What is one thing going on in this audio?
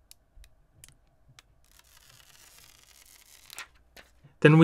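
A thin plastic film peels away with a soft crackle.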